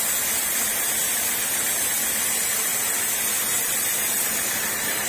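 A band saw runs with a loud, steady high whine as it cuts through wood.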